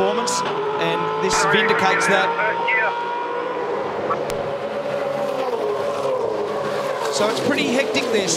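Racing car engines roar loudly at high revs.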